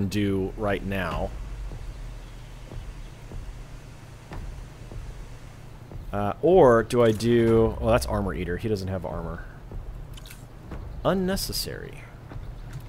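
A middle-aged man talks calmly into a close microphone.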